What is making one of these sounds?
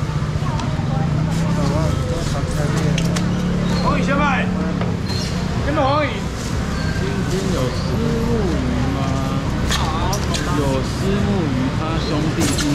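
A young man speaks loudly nearby.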